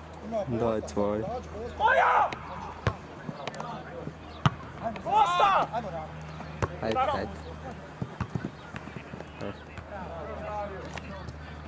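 Male football players shout to each other across an open outdoor field.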